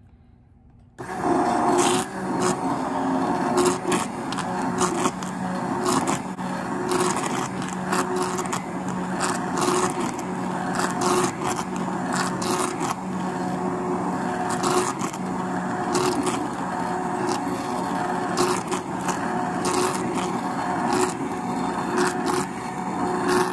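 A hand blender whirs steadily while blending a thick mixture.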